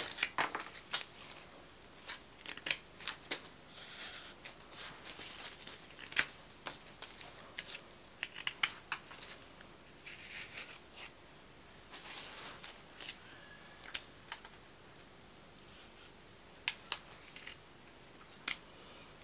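Leaves and stems rustle as hands handle flowers.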